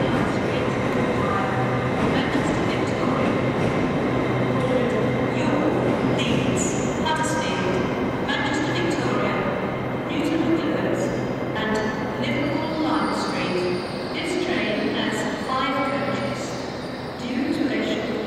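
A diesel train engine idles with a steady low rumble under a large echoing roof.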